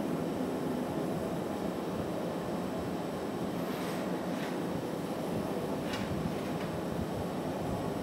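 A glass furnace roars steadily.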